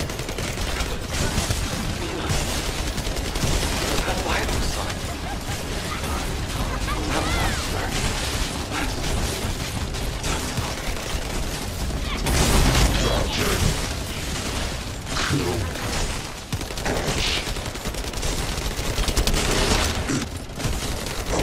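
Electric bolts zap and buzz.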